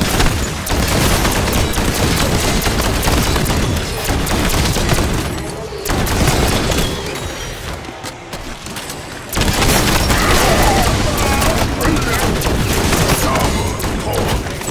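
A rapid-fire gun shoots in long bursts.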